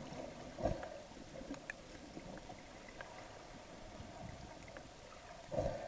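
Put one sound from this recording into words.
Water swishes and crackles, heard muffled from underwater.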